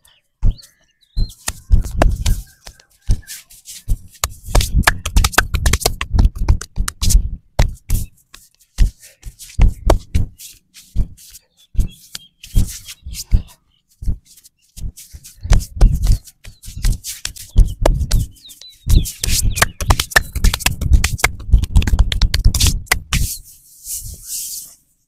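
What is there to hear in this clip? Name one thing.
Hands slap and pat rhythmically on a man's back and shoulders.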